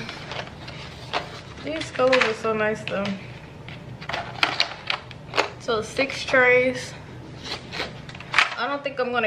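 Wooden pencils rattle and click as trays of them are lifted and set down.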